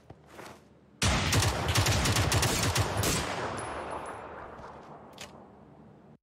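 A gunshot bangs loudly and echoes away.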